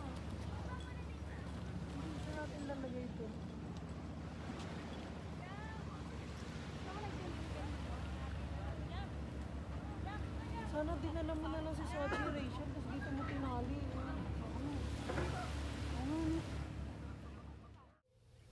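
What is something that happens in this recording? Young women talk and laugh nearby outdoors.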